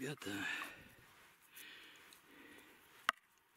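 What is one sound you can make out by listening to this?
A hand scrapes through loose soil.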